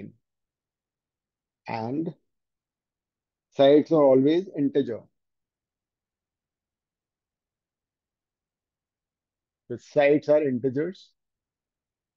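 A man speaks calmly in short phrases, as if explaining, close to a microphone.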